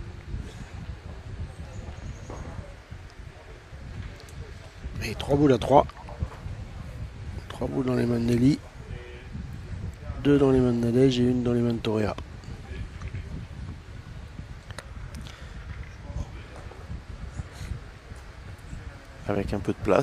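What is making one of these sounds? A crowd murmurs softly outdoors.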